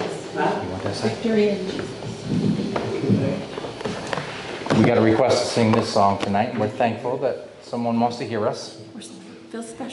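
A man speaks through a microphone in a room with a slight echo.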